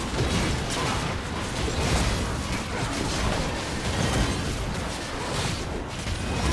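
Fantasy battle sound effects clash and burst rapidly.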